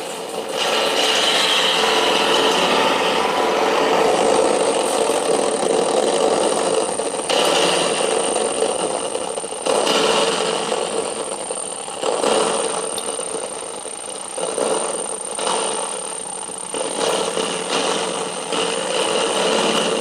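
A circuit-bent noise box drones with harsh noise.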